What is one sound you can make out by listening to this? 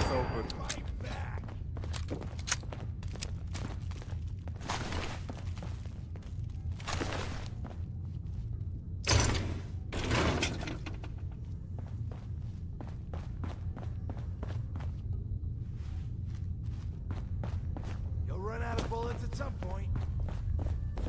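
Footsteps crunch over debris on a hard floor.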